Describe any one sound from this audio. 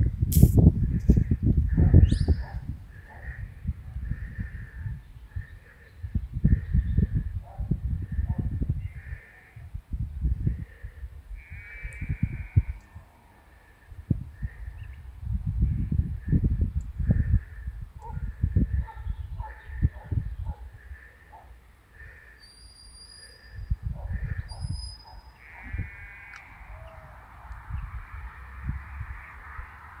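A flock of sheep bleats nearby.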